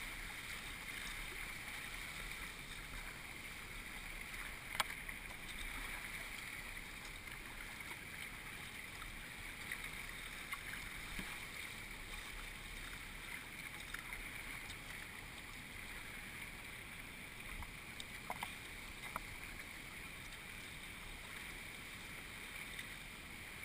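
A kayak paddle splashes into the water with each stroke.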